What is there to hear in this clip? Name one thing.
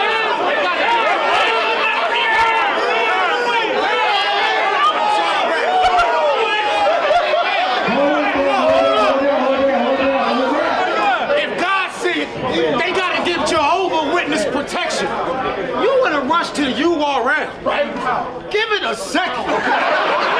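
A crowd of young men cheers and shouts loudly in an echoing room.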